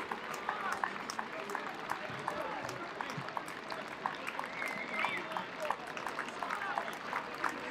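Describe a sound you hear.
Players clap their hands steadily outdoors.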